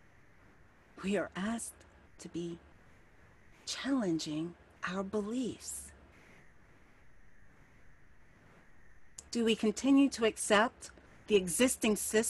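An older woman speaks calmly and warmly into a microphone, close by, with pauses between phrases.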